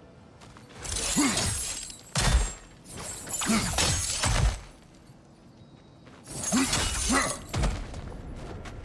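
A heavy chain rattles and clanks.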